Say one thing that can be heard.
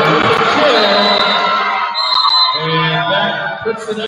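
Young players shout and celebrate.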